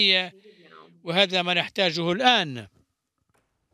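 A young boy speaks haltingly through an online call.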